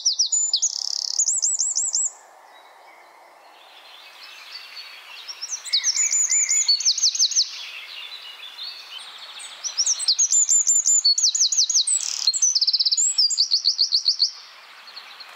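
A small bird sings loud, rapid trilling bursts close by.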